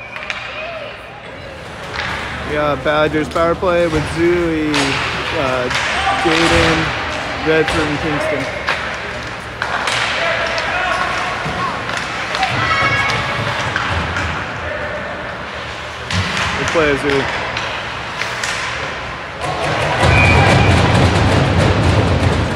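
Spectators talk and call out in a large echoing rink.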